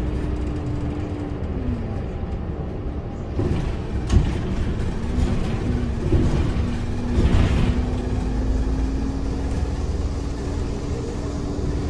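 A bus engine hums steadily from inside as the bus drives along.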